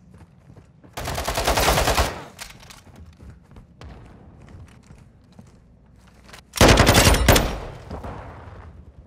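A rapid burst of automatic gunfire rings out loudly, twice.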